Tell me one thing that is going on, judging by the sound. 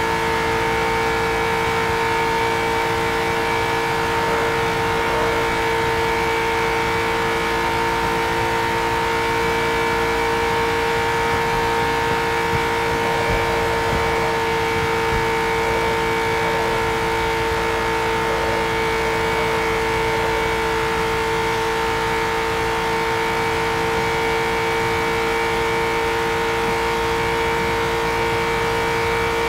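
A racing car's engine drones at a high, steady pitch.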